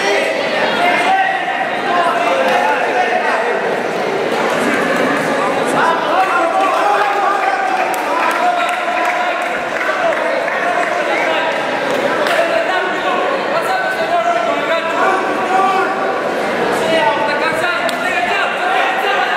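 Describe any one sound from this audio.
A large crowd shouts and cheers in an indoor arena.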